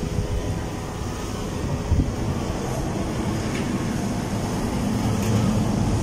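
Water pours from a hose and splashes into a tub.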